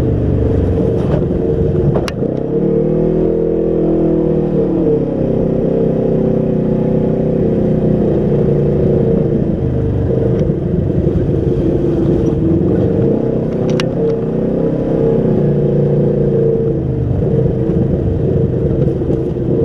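An off-road vehicle's engine drones loudly, its pitch rising and falling as it drives.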